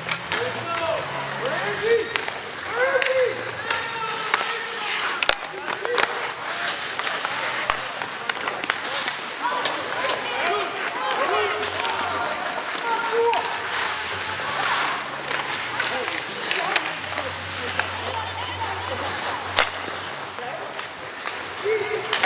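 Skates scrape and hiss on the ice.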